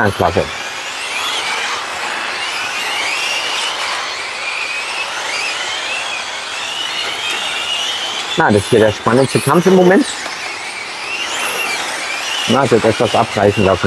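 Small electric race cars whine loudly as they speed around a track.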